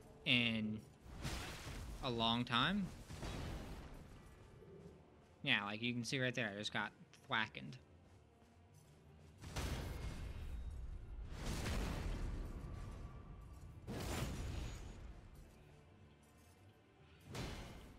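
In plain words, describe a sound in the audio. Steel swords clash and swing in a fight.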